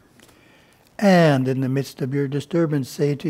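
An elderly man reads out close by in a slow, chanting voice.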